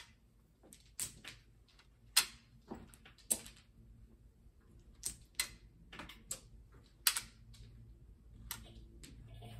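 Plastic tiles click and clack against each other.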